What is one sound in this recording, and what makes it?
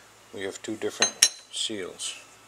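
Small metal parts click against each other.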